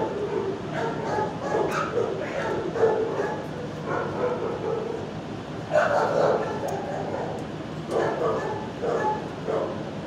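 A dog's claws click on a hard floor.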